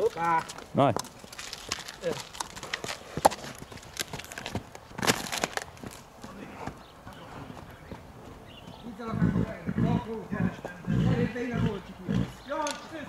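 Hooves clop and shuffle on hard dirt.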